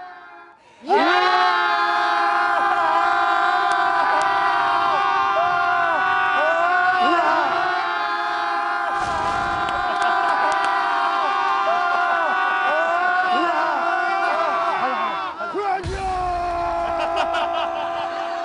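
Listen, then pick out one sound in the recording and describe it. A group of young men sing out long, loud, held notes together.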